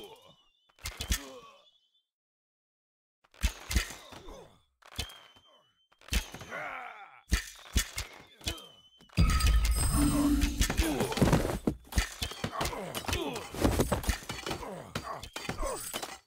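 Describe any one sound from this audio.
Game sound effects of clashing weapons and battle noises play.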